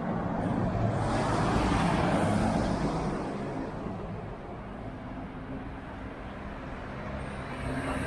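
Traffic hums steadily along a street outdoors.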